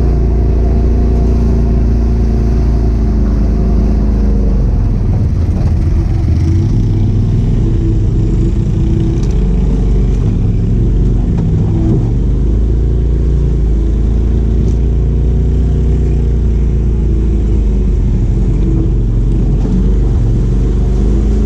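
An off-road vehicle's engine rumbles loudly and changes pitch as it drives.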